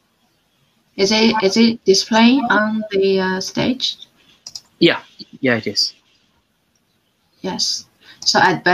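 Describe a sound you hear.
A young woman speaks into a computer microphone, heard through an online call.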